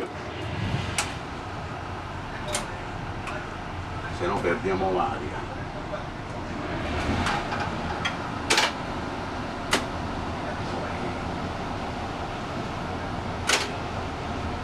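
Switches click sharply on a control panel.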